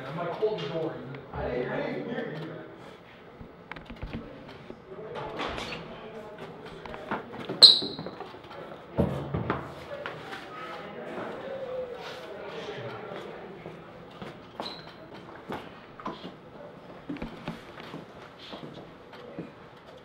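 Teenage boys talk quietly nearby.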